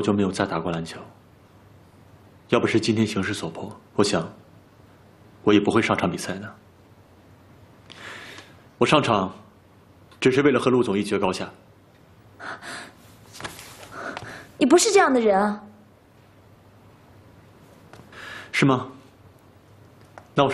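A young man speaks calmly and quietly, close by.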